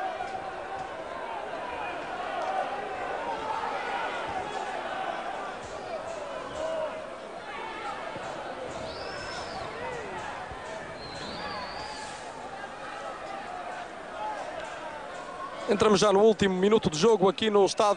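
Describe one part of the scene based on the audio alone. A large crowd chants and cheers in an open stadium.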